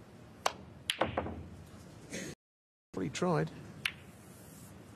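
Snooker balls knock together with short clicks.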